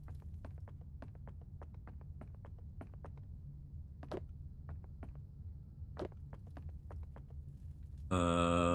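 Footsteps tread quickly and steadily on rocky ground.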